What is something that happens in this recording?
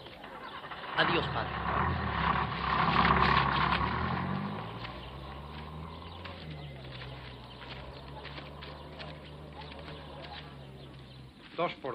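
A car engine starts and rumbles as the car pulls away.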